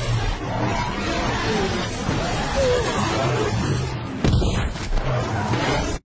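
Tyres skid and crunch on dusty ground.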